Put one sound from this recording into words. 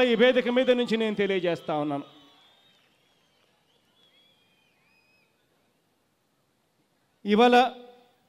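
A man speaks loudly and forcefully into a microphone over loudspeakers, echoing outdoors.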